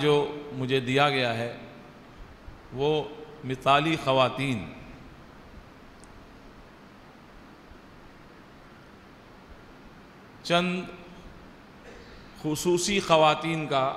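An elderly man speaks slowly and earnestly through a microphone, with long pauses.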